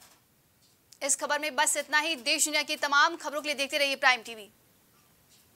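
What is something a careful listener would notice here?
A young woman reads out the news clearly through a microphone.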